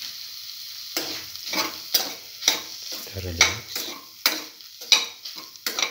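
A spatula scrapes and stirs food in a pan.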